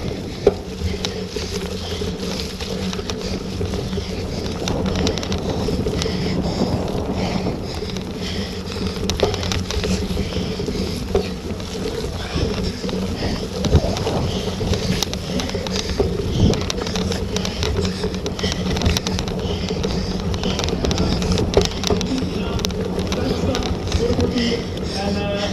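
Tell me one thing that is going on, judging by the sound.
A bicycle chain and gears whir steadily.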